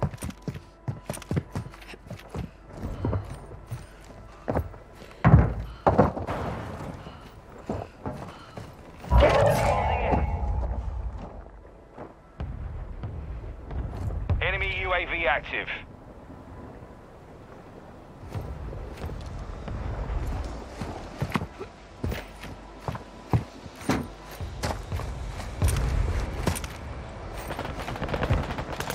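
Quick footsteps thud on hard floors and stairs.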